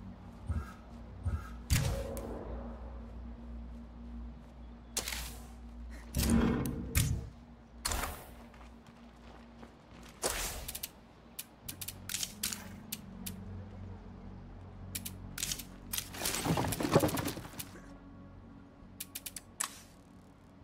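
Short game menu clicks and whooshes sound now and then.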